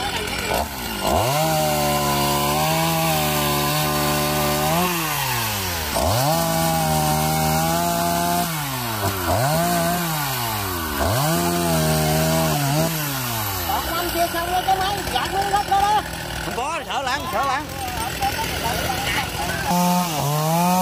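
A chainsaw engine roars and revs up and down, cutting through wood.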